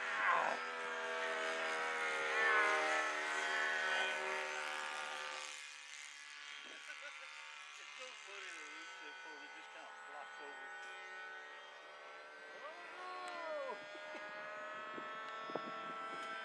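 A small model plane engine buzzes overhead, its pitch rising and falling as it turns.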